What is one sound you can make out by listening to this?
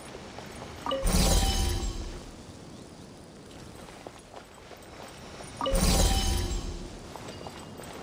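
A heavy stone mechanism turns with a deep, booming rumble.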